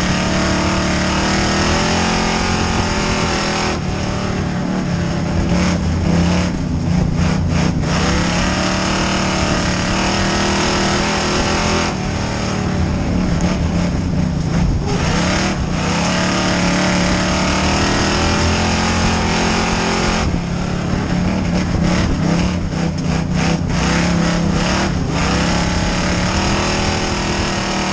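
A race car engine roars loudly up close, rising and falling as it speeds up and slows for the turns.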